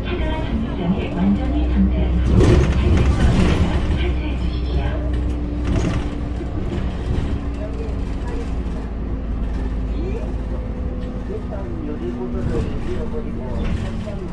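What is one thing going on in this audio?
A bus engine hums steadily with a low drone.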